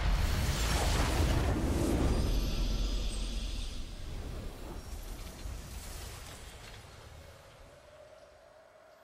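A triumphant game fanfare booms out and slowly fades away.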